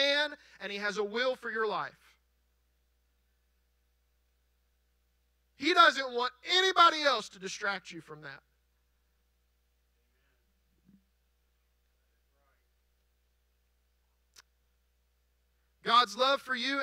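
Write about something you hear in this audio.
A man speaks with animation through a microphone, heard through loudspeakers in a large hall.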